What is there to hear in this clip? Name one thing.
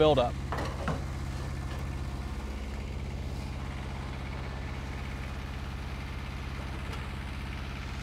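A small engine hums steadily close by.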